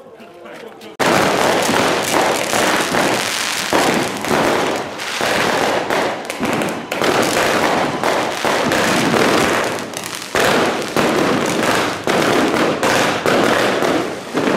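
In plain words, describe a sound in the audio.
A fireworks fountain roars and crackles loudly.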